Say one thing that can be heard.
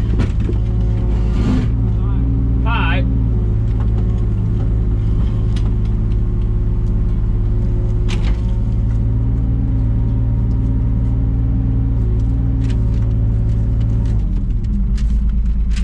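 A digger's hydraulics whine as the arm moves.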